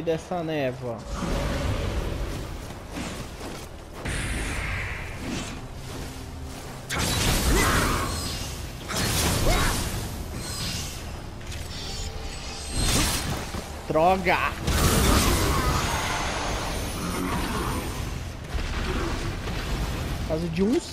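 Sword strikes and impacts crash in a video game fight.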